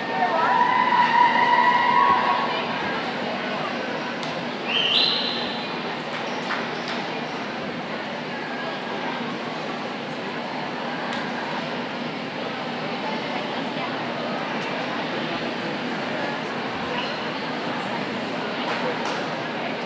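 A crowd murmurs and chatters in a large echoing rink.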